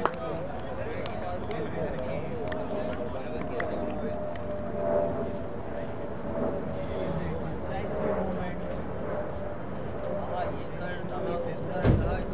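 Men talk and call out nearby outdoors.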